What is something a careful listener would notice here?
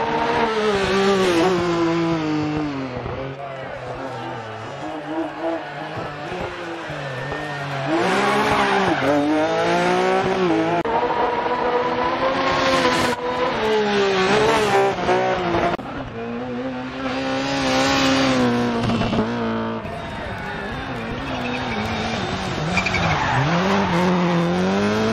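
A rally car engine roars and revs up and down as it passes.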